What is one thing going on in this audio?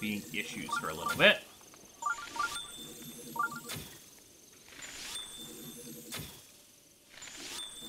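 Arrows burst with crackling, sparkling blasts.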